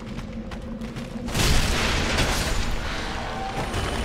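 A blade clashes against bone in a quick fight.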